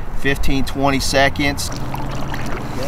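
A middle-aged man speaks calmly outdoors.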